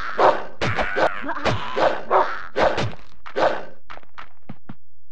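A heavy weapon strikes a body again and again with dull, wet thuds.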